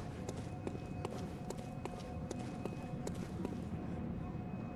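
Footsteps tread on stone.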